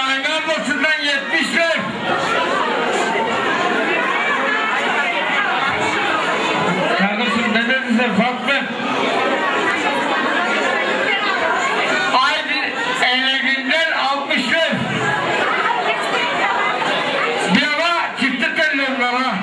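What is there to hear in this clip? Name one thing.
A crowd of guests chatters in an echoing hall.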